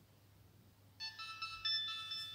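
A mobile phone plays a short electronic startup tune.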